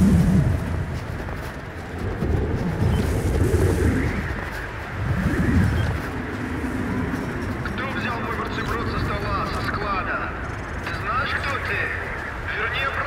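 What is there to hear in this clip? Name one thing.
Wind howls and gusts in a snowstorm.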